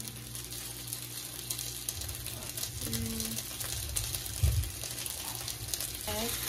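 Meat sizzles on a contact grill.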